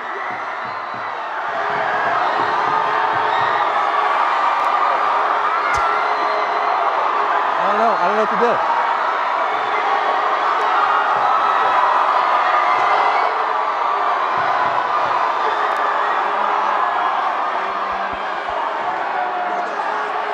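A large crowd cheers and screams loudly in a big echoing hall.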